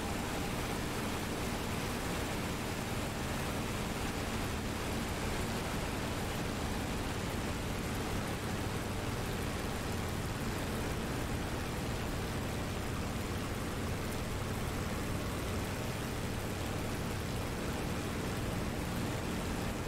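A propeller aircraft engine drones steadily, heard from inside the cockpit.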